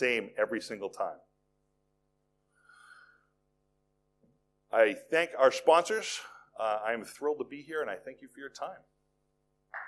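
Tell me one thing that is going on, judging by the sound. A middle-aged man speaks calmly through a microphone in a large hall.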